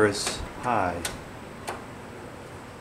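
A fan's knob clicks as it turns.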